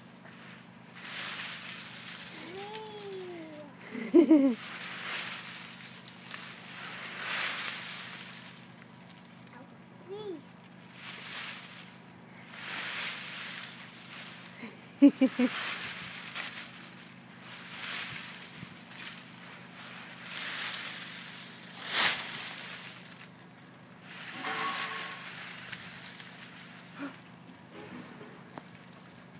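Dry leaves rustle and crunch as a toddler scoops and tosses them.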